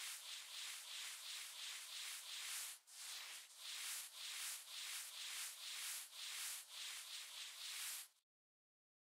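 A soft brush sweeps in quick, rhythmic strokes.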